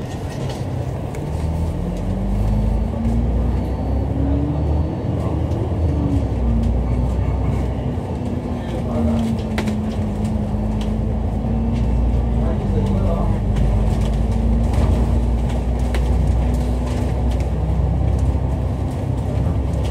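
A bus engine hums and rises in pitch as it pulls away, then drones steadily.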